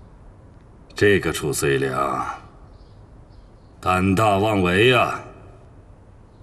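A middle-aged man speaks with amusement, then laughs.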